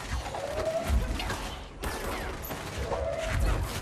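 Concrete shatters and debris clatters down.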